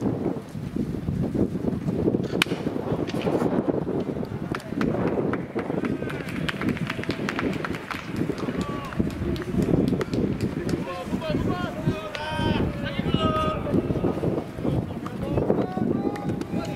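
A crowd murmurs and cheers steadily outdoors.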